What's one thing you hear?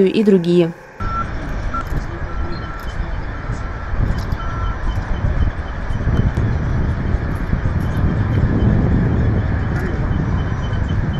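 A heavy dump truck engine rumbles in the distance.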